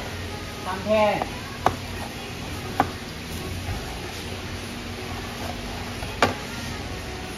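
A knife scrapes and taps on a cutting board.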